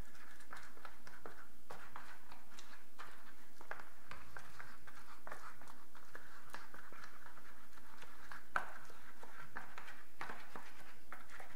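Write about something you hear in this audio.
A brush dabs and swishes against a soft silicone mould.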